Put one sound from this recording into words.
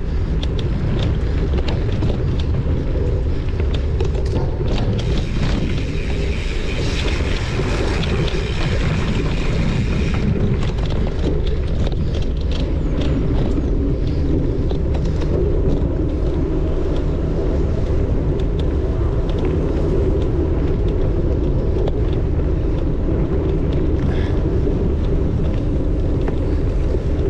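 Tyres crunch over dirt and twigs.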